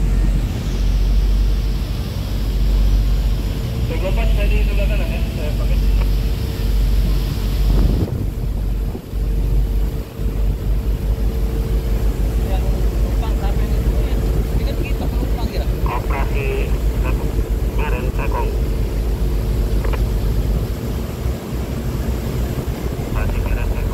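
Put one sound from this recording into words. Tugboat engines rumble steadily nearby.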